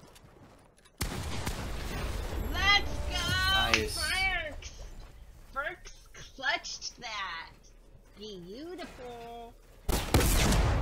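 A woman shouts and squeals excitedly into a microphone.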